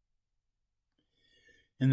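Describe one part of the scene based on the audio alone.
An elderly man speaks softly and calmly, close by.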